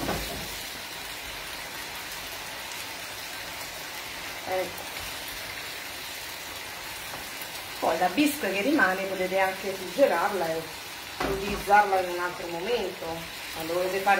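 A wooden spoon stirs food in a frying pan.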